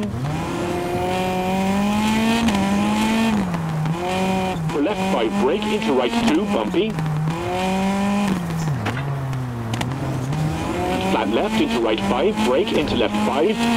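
A rally car engine revs hard, rising and falling as it shifts gears.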